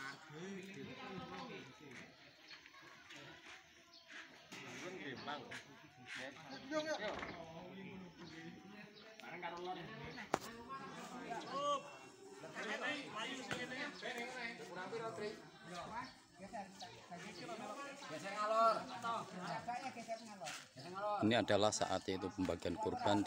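Several men talk and call out to each other outdoors, some close by and some farther off.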